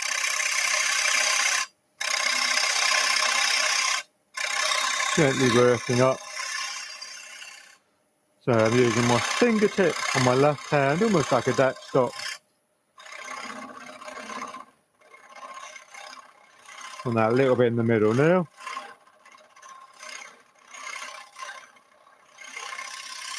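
A gouge scrapes and hisses against spinning wood on a lathe.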